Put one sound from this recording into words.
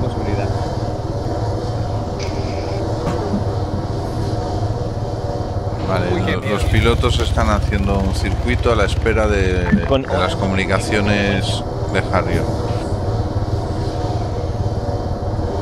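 An aircraft engine drones steadily and loudly.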